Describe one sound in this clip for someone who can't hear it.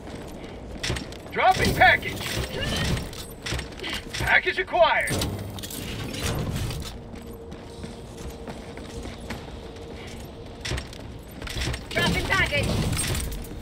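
Heavy boots thud on a hard floor.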